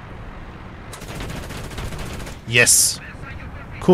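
A cannon fires with a sharp blast.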